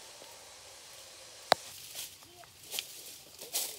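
Leaves rustle as a person brushes through dense plants.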